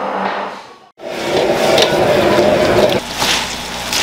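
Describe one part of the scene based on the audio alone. Food sizzles and hisses as it is stirred in a hot pan.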